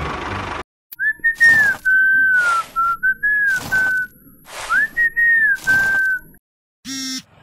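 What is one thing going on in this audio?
A broom swishes across sand.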